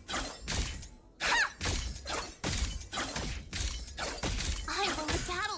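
Game characters clash with sharp hits.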